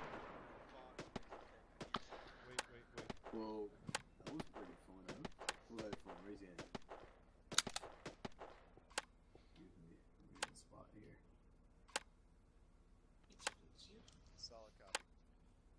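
Metal clicks and rattles as a rifle is reloaded.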